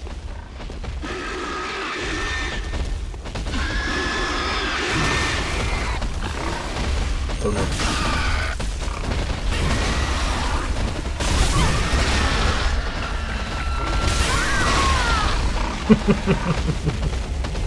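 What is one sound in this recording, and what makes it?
A large beast growls and screeches.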